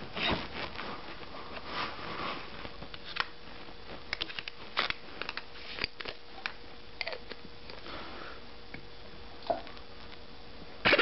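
Small plastic parts click and knock as they are handled.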